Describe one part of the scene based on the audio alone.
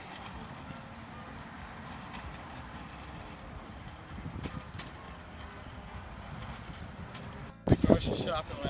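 A shopping cart rattles across pavement outdoors.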